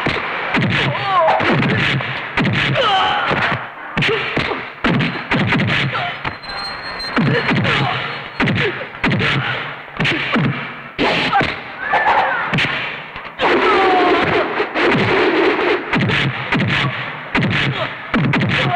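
A man grunts and shouts as he fights.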